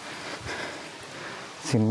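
Water trickles softly over rocks.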